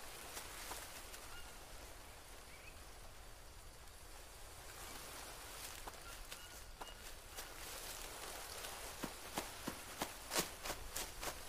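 Footsteps crunch on dry leaves and forest ground.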